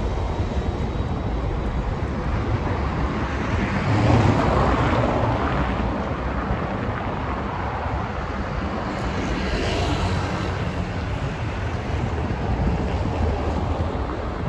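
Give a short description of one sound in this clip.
Wind rumbles against a microphone outdoors.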